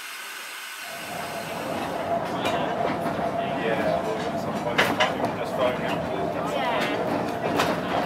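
Carriage wheels rumble and clatter on the track beneath a moving narrow-gauge train.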